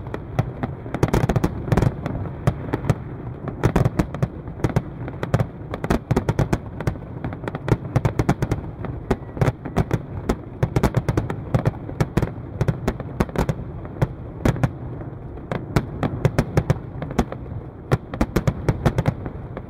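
Fireworks burst with rapid loud bangs and crackles.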